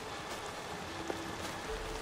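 A campfire crackles.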